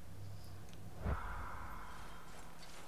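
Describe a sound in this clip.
A soft whoosh sounds as a game menu closes.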